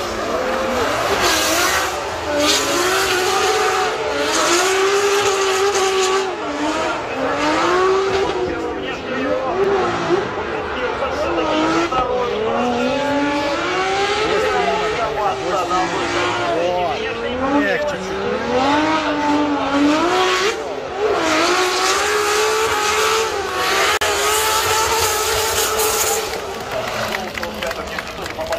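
A drift car's engine roars loudly, its pitch rising and falling as it revs.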